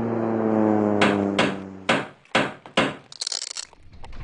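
A hammer knocks on wood.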